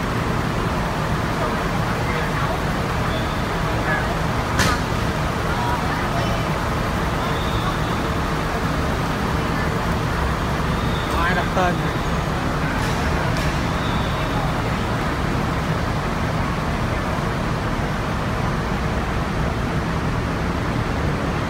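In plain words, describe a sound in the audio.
A diesel bus engine idles with a low, steady rumble in a large echoing space.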